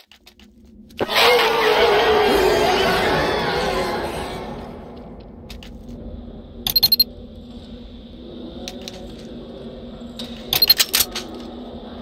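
Game zombies groan and moan.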